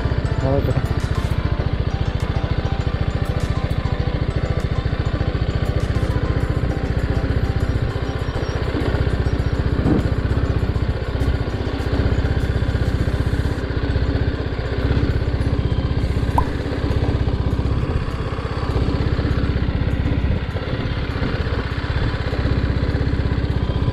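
A motorcycle engine runs steadily at low speed.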